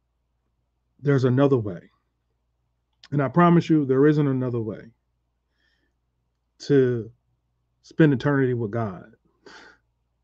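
A man speaks calmly and slowly into a close microphone, in short phrases with pauses.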